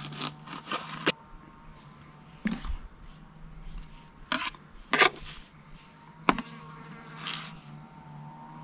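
A knife scrapes and taps against a cutting board in short bursts.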